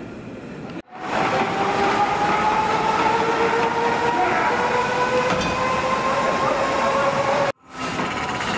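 A hand-cranked machine whirs with a slowly rising hum.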